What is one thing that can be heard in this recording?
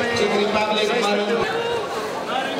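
A man speaks close by in a low voice.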